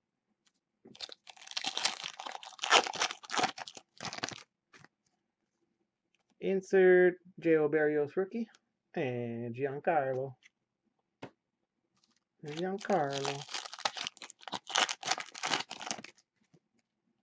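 A foil wrapper crinkles and tears as hands rip it open.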